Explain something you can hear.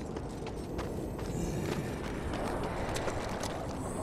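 Heavy footsteps clank on stone.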